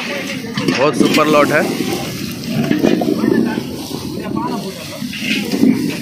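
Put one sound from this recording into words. Dry onion skins rustle as a hand sorts through a pile of onions.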